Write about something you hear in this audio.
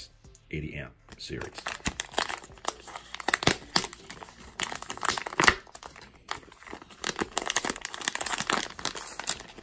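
A plastic package crinkles and rustles as hands open it.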